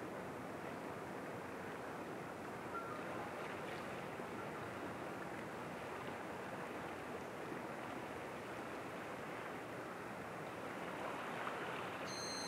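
Small waves lap gently against a rocky shore.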